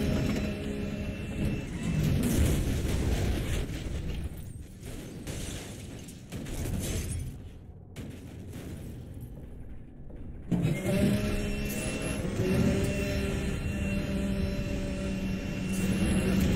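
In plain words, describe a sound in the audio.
A sports car engine roars at high speed.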